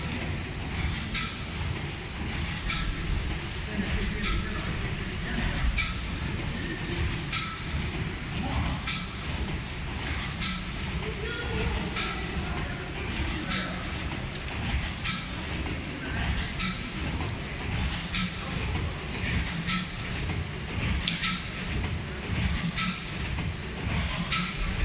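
A packaging machine clicks and clatters in a quick, regular rhythm.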